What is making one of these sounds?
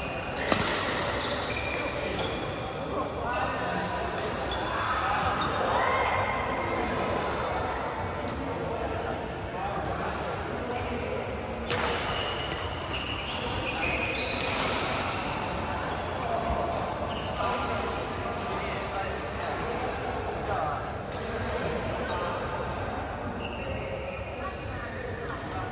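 Shuttlecocks are struck with rackets, with sharp pops, in a large echoing hall.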